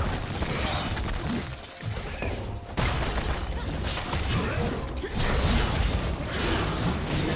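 Video game spells crackle and whoosh during a fight.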